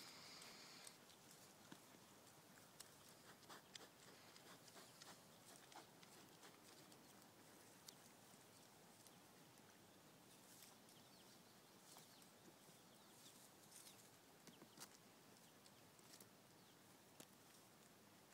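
Hooves clatter and scrape on a wooden stump.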